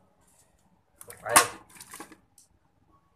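A metal lid clanks down onto a pot.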